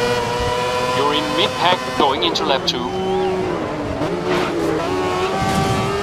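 A racing car engine drops in pitch with rapid gear shifts while braking.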